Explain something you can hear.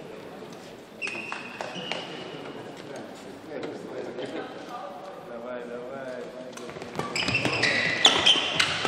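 A shuttlecock is struck sharply by rackets back and forth.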